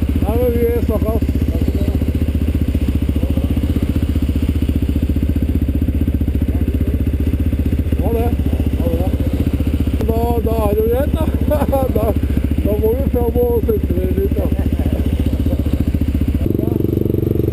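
A dual-sport motorcycle engine idles close by.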